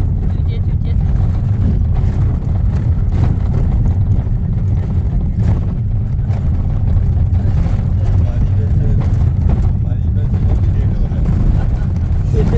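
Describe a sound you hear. A vehicle rumbles steadily along a dirt road.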